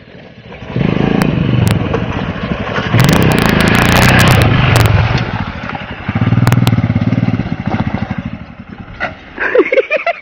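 A motorcycle rides over rough, bumpy ground.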